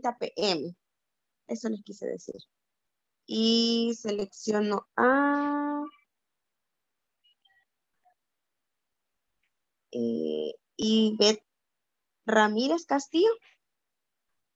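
A young woman speaks with animation, close to the microphone, heard through an online call.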